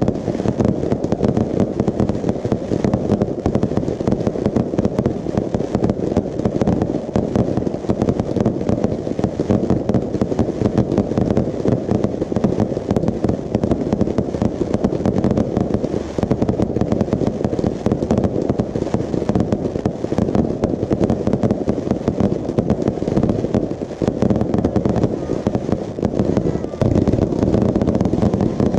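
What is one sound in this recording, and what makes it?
Fireworks boom and crackle rapidly overhead.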